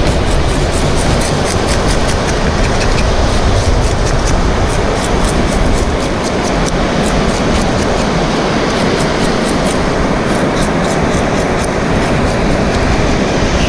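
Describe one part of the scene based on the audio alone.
A knife scrapes and cuts through a fish.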